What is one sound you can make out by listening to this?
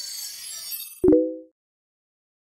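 A computer startup chime sounds briefly.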